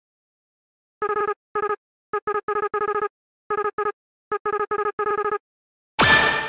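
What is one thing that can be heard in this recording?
Short beeping blips chatter in quick bursts, like text being typed out.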